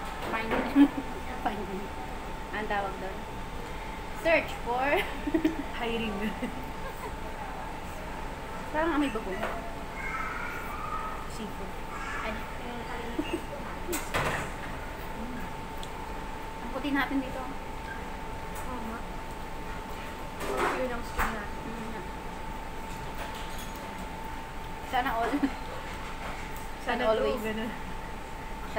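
Two young women talk and laugh close by.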